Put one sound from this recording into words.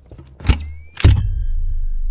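A metal device clanks down and starts a loud low hum.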